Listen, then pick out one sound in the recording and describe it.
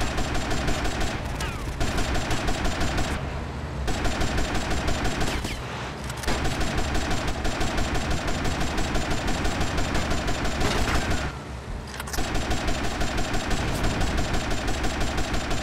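Water splashes and sprays against a boat's hull.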